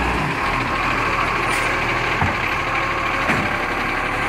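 A truck's mechanical arm whirs and whines as it lifts a bin.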